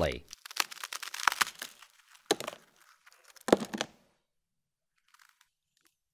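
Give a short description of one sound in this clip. A frozen ice cream sandwich cracks and snaps apart.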